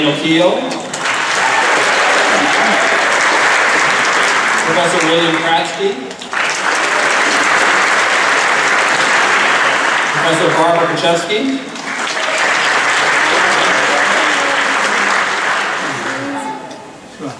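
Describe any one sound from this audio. An audience applauds in bursts.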